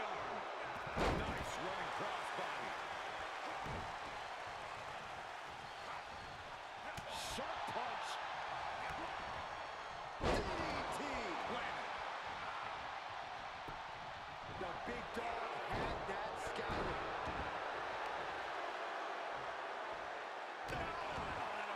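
Heavy thuds of bodies slamming onto a ring mat land now and then.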